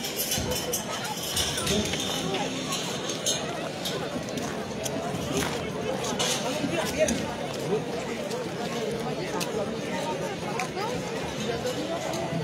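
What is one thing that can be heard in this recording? A large crowd of men and women chatters outdoors, many voices at once.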